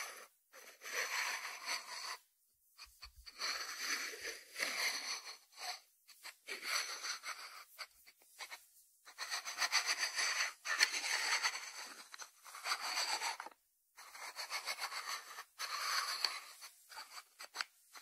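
Fingertips rub and scratch over a ceramic lid.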